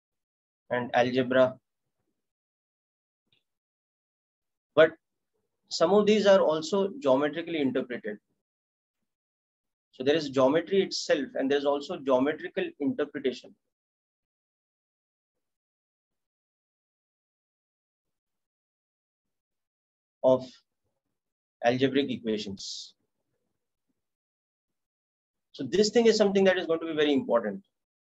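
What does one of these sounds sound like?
A man speaks calmly in bursts with pauses, close to a microphone.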